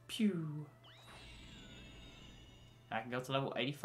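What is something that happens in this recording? A bright magical shimmer rings out and fades.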